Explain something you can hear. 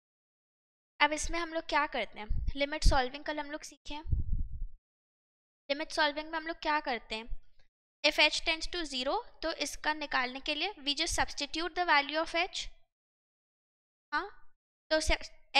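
A young woman speaks calmly into a headset microphone, explaining.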